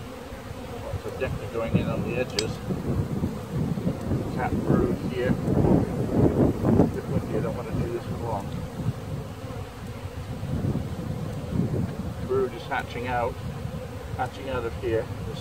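A wooden hive frame scrapes against the hive box as it is lifted out.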